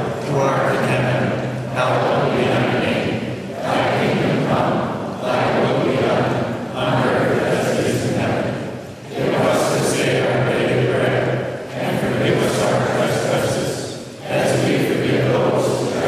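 A congregation of men and women sings together in phrases, echoing through a large hall.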